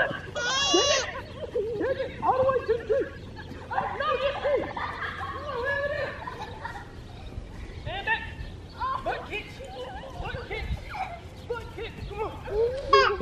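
Young girls shout and squeal excitedly outdoors.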